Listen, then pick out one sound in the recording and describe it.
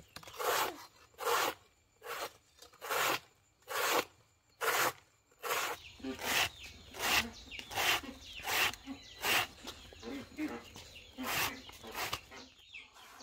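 A knife chops steadily through a soft plant stem with quick, rhythmic strokes.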